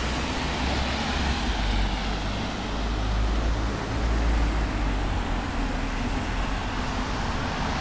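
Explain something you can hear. Car tyres hiss past on a wet road.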